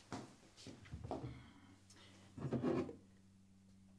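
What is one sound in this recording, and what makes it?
An older woman opens a wooden cupboard door.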